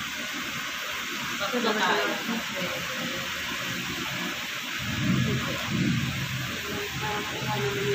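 An electric nail file whirs steadily.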